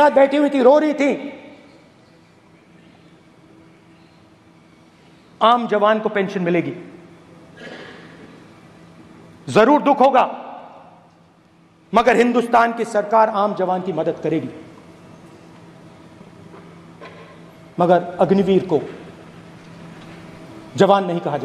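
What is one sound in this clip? A man speaks forcefully into a microphone in a large hall, with pauses between phrases.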